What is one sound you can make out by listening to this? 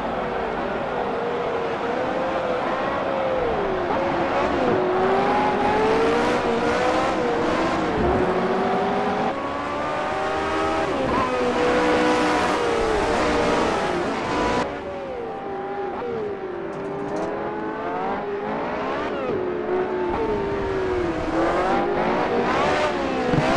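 Racing car engines whine and roar, rising and falling in pitch.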